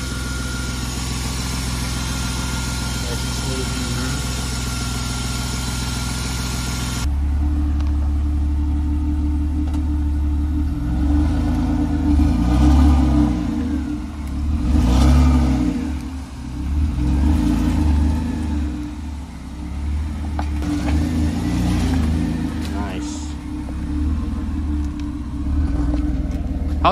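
An inline-six car engine idles.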